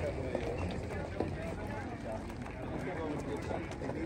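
Men and women chatter in the background.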